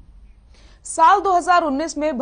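A young woman reads out calmly through a microphone.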